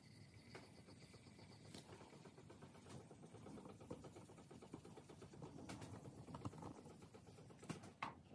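A sponge rubs softly against a smooth surface.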